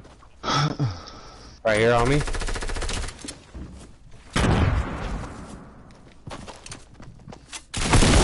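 Wooden panels snap into place with hollow thuds.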